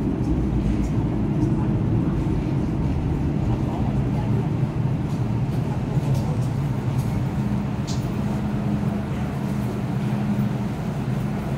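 A train rumbles into the station and slows to a stop.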